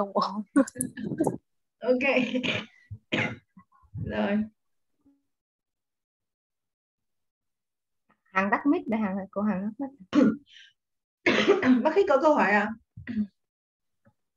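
A young woman speaks and laughs over an online call.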